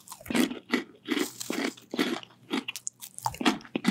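A woman crunches on snacks close to a microphone.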